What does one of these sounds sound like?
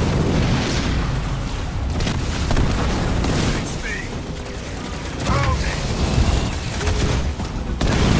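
Explosions boom in a loud battle.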